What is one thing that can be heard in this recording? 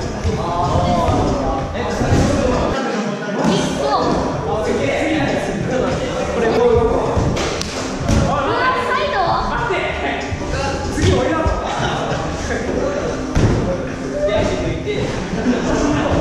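Feet thud on padded boxes as people jump and land.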